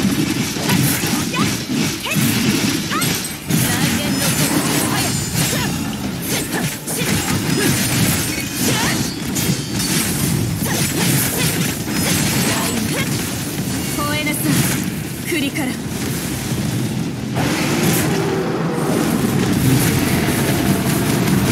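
Loud blasts and explosions burst again and again.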